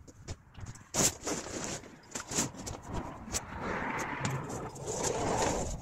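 Plastic sheeting rustles and crinkles as a man handles it.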